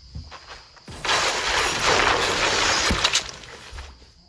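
A pickaxe strikes rock with heavy knocks.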